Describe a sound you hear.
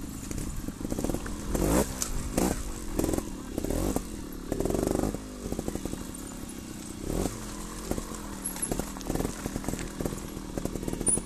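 Bicycle tyres crunch and clatter over loose rocks.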